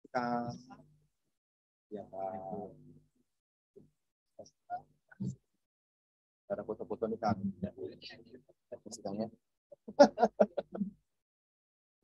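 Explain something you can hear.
A woman speaks through a microphone, announcing in a calm voice.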